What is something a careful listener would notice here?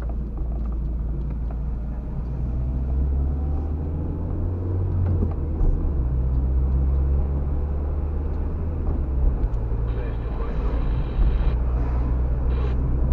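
A car engine hums steadily from inside the car.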